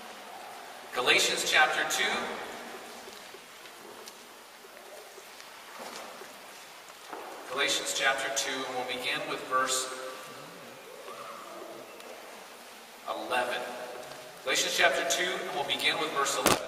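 A young man reads aloud through a headset microphone in an echoing hall, pausing between phrases.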